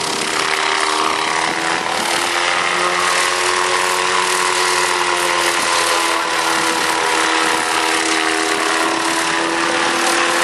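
Helicopter rotor blades thump and chop the air.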